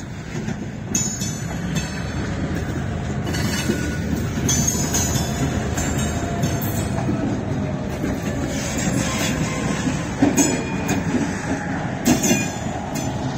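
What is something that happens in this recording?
Steel wheels clank over rail joints.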